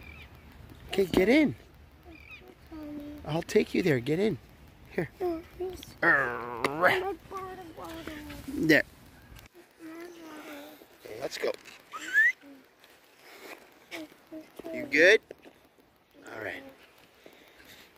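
A young child talks and babbles close by.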